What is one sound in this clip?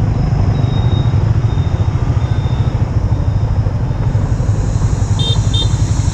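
A small truck drives past.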